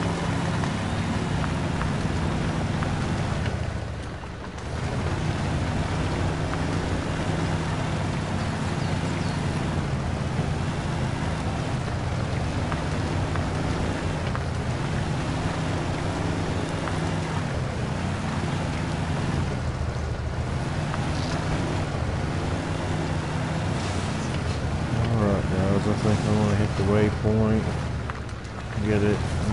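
An off-road truck engine rumbles and strains steadily.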